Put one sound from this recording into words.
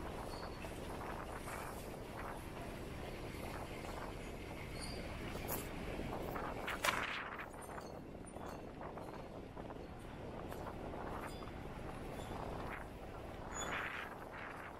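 Footsteps tap on paving stones outdoors.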